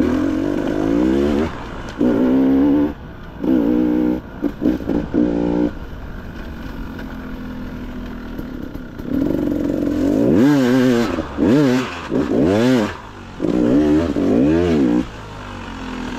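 A dirt bike engine revs up and down in short bursts.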